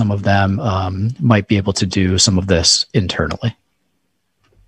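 A man speaks calmly into a close microphone, heard through an online call.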